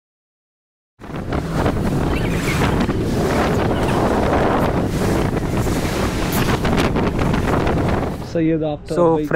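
Wind blows loudly outdoors.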